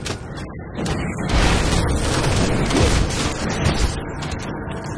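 Magic blasts crackle and strike in a noisy fight.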